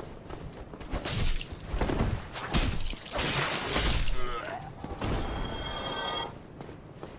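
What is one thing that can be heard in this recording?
A sword swings and strikes.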